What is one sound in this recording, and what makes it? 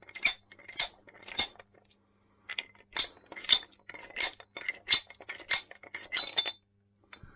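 Metal engine parts clink and clatter as they are handled.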